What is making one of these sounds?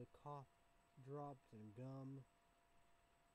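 A young man speaks briefly and calmly, close to the microphone.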